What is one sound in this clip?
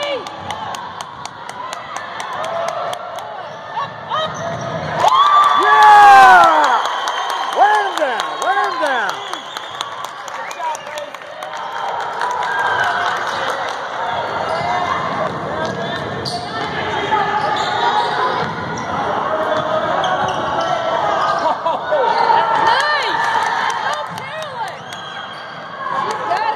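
Sneakers squeak on a hardwood court in an echoing gym.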